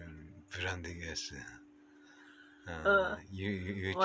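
A middle-aged man laughs close by.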